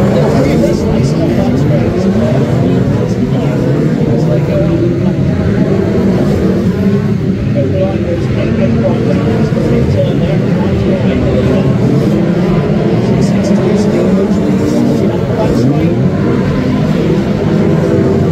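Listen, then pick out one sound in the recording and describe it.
Racing car engines roar and rev loudly across the track.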